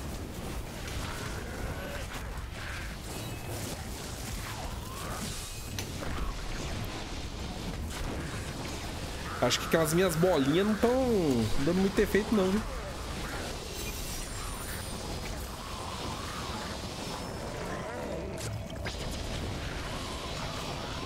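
Fiery spell effects whoosh and crackle in a game.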